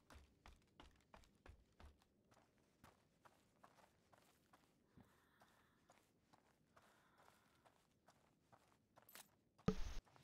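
Footsteps thud softly on a wooden floor.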